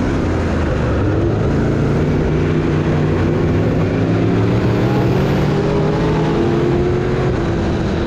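A race car engine roars loudly, rising and falling in pitch.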